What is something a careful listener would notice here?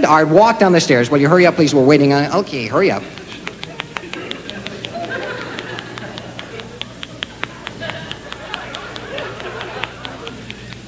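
An acoustic guitar is finger-picked in quick, bright notes.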